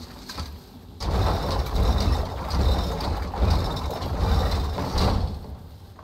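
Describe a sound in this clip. A wooden winch rumbles and creaks as it turns.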